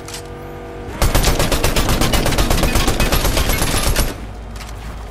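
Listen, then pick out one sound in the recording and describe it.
Rapid automatic gunfire rattles loudly.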